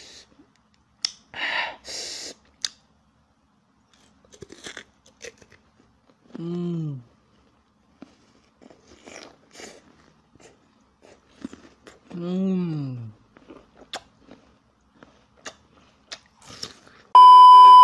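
A young man bites into crunchy food and chews noisily, close up.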